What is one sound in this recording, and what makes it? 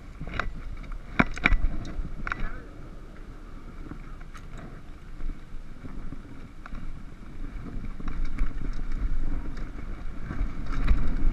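Bicycle tyres roll and crunch over a gravel dirt trail.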